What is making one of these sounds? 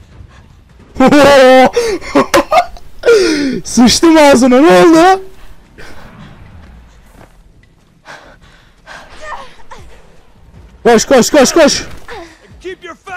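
A young man shouts and laughs loudly, close to a microphone.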